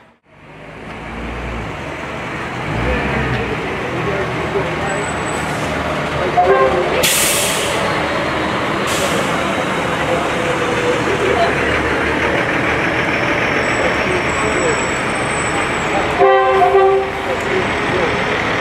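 Diesel fire engines rumble as they drive past one after another.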